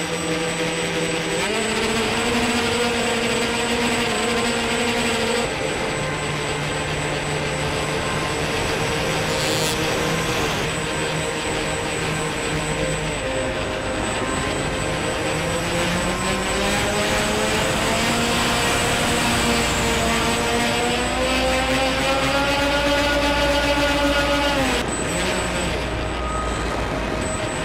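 A small propeller motor whines steadily, its pitch rising and falling with the throttle.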